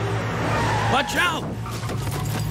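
A car strikes a person with a heavy thud.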